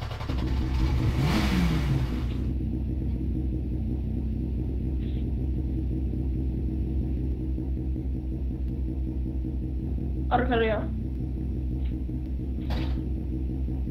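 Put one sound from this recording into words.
A race car engine idles with a steady low rumble.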